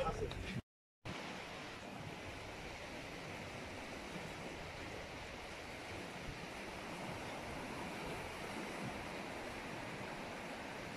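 Waves wash gently onto a beach in the distance.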